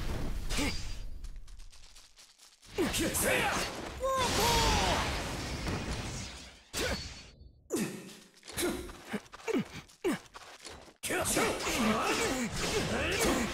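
Swords clash and slash with sharp whooshing strikes.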